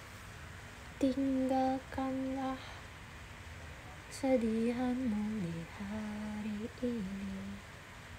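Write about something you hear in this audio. A young woman hums a short tune close by.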